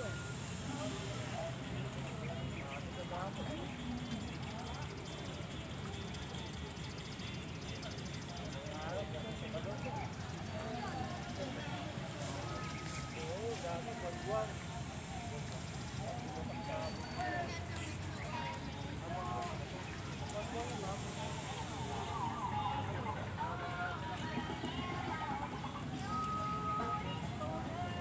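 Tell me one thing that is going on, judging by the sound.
Several men talk in the distance.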